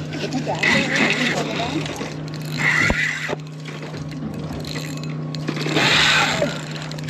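Water laps against a boat's hull.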